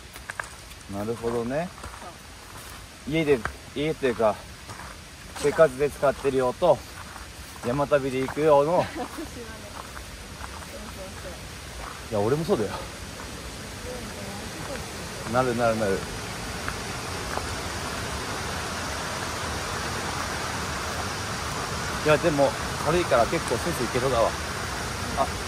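A young man talks with animation close by, in short bursts.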